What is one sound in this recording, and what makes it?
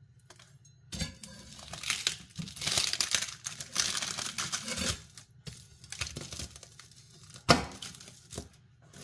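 A knife crunches as it cuts through crisp brittle.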